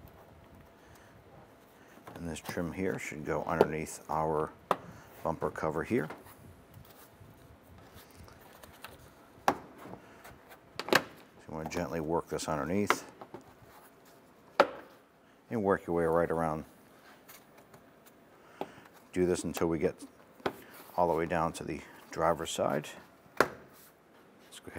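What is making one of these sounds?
Plastic trim clicks and knocks as it is pulled loose.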